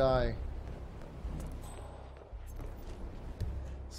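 Footsteps tread on wooden boards.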